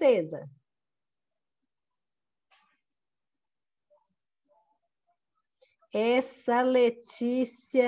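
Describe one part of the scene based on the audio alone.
A woman speaks slowly and clearly, drawing out words, over an online call.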